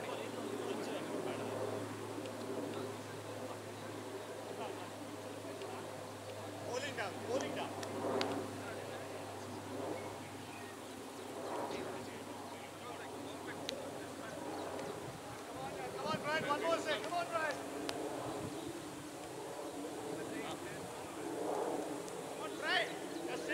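Men call out to each other across an open field outdoors.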